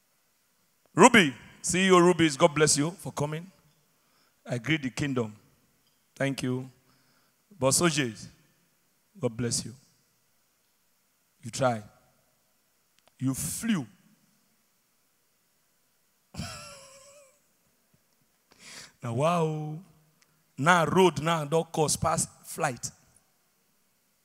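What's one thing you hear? A young man talks with animation into a microphone, heard over loudspeakers in a large hall.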